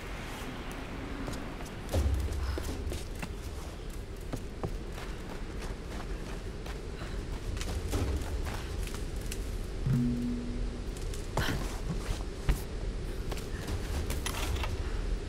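Footsteps crunch on stone and leaves.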